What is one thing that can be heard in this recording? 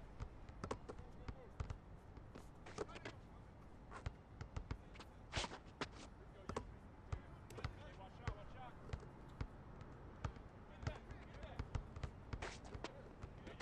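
A basketball is dribbled on an outdoor concrete court.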